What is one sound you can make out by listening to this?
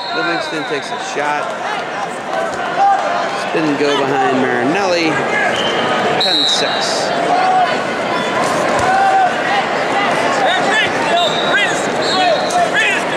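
A large crowd cheers and shouts throughout a big echoing arena.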